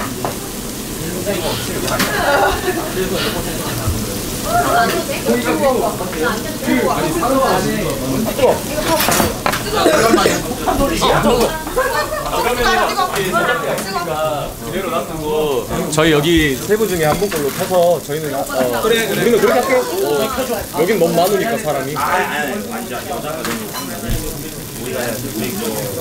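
Several young women and a young man talk and chatter lively nearby.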